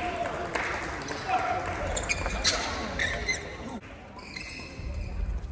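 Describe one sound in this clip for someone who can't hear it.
Players' shoes squeak on the court floor.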